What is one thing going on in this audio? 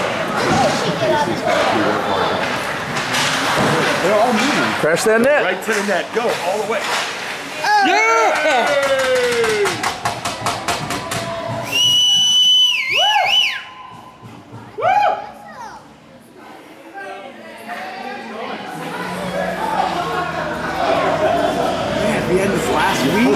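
Skates scrape and carve across the ice in an echoing rink.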